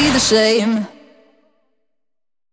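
A young woman sings a short phrase close by, and the phrase rings out and fades.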